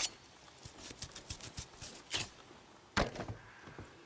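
Boots clank on a metal ladder.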